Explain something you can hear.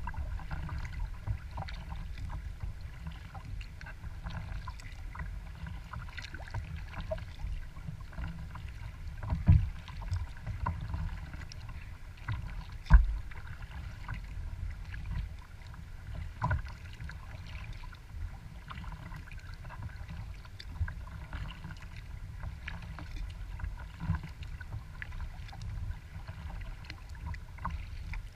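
Small waves lap and splash against a kayak's hull.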